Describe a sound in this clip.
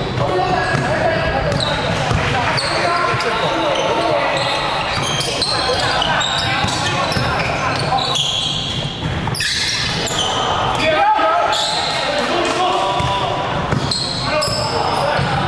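Sneakers squeak sharply on a court in a large echoing hall.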